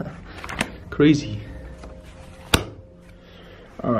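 A heavy book thumps shut.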